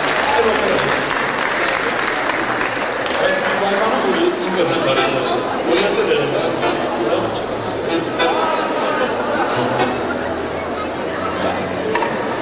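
A band plays music in a large echoing hall.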